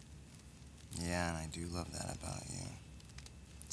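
A young man speaks quietly close by.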